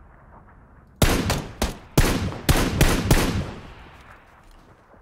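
Rapid gunshots crack and echo outdoors.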